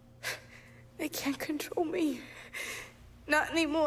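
A young woman speaks softly and weakly.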